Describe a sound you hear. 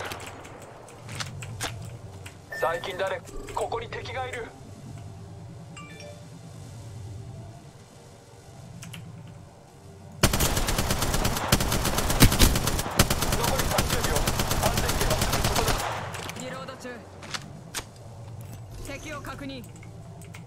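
A gun's magazine is reloaded with metallic clicks and clacks.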